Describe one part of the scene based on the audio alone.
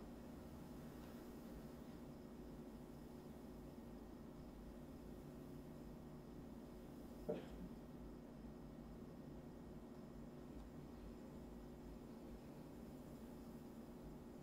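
A paintbrush dabs softly on canvas.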